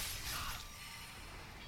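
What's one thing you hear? A magical sparkle chimes and fades.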